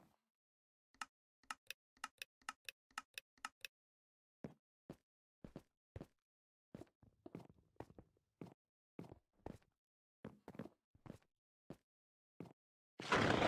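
Blocks are placed one after another with quick soft thuds.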